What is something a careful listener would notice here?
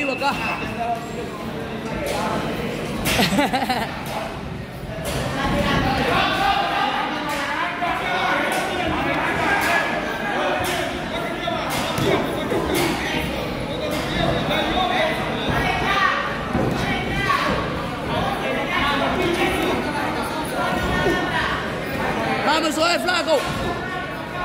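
A crowd of young men and women shouts and cheers in an echoing hall.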